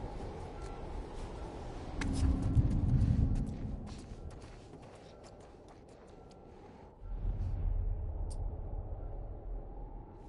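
Soft footsteps shuffle slowly across the floor.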